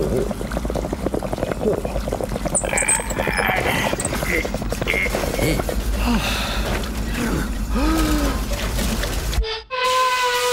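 A water heater rumbles and gurgles loudly.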